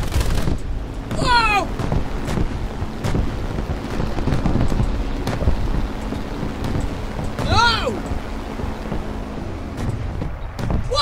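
A piston-engine fighter plane drones in flight.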